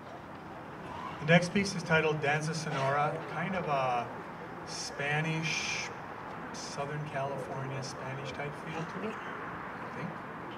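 A man speaks calmly into a microphone through loudspeakers outdoors.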